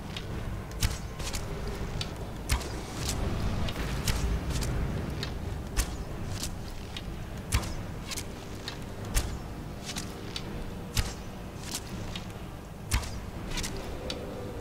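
A bow twangs as arrows are loosed in quick succession.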